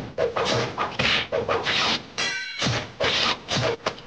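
Blows and weapons clatter in a fight.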